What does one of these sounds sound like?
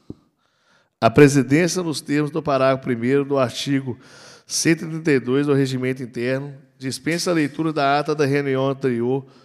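A man speaks calmly into a microphone, heard through a loudspeaker in a large room.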